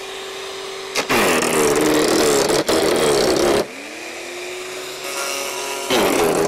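A garden shredder loudly grinds and crunches through branches.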